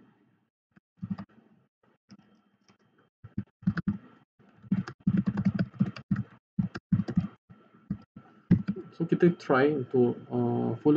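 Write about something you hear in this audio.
A man talks calmly into a microphone, in short bursts with pauses.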